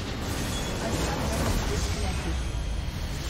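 A large explosion booms in a game.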